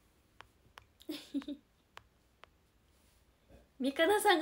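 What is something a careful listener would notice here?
A young woman speaks softly and brightly, close to a microphone.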